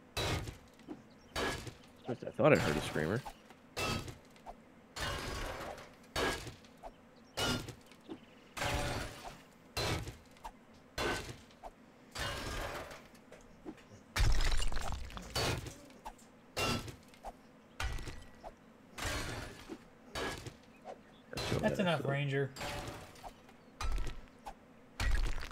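A pickaxe strikes rock again and again, with sharp cracks.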